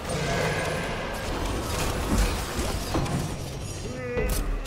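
Game magic blasts and weapon strikes crackle and whoosh in quick bursts.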